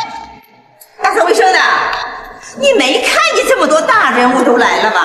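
A middle-aged woman speaks with animation.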